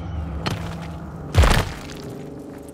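A blade swings and strikes with a sharp thud.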